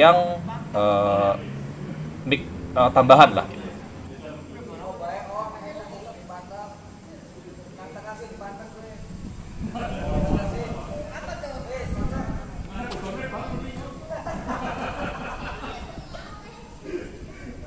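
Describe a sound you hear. Several people talk and call out outdoors.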